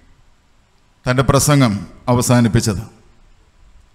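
A man speaks calmly into a microphone, heard through a loudspeaker.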